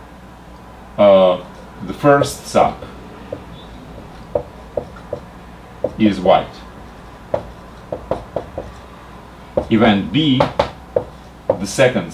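A middle-aged man speaks calmly and clearly into a nearby microphone, in short phrases with pauses.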